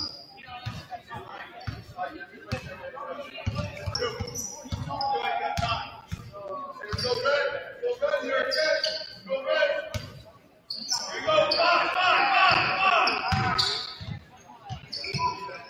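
A basketball bounces on a hard wooden court.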